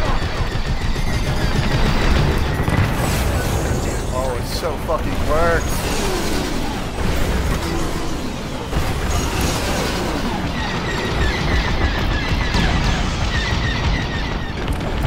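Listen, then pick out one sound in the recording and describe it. A man talks into a headset microphone.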